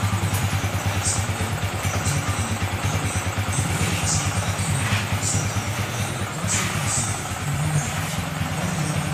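A scooter engine idles close by with a steady, rapid chugging.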